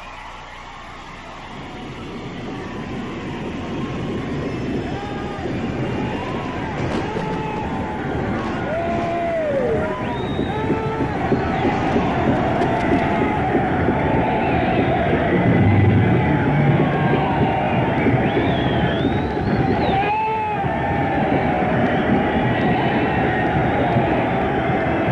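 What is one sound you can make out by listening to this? A large crowd cheers and screams loudly in a big hall.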